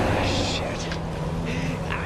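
A man speaks tensely.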